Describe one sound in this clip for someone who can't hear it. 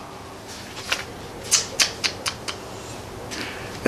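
Book pages rustle and turn.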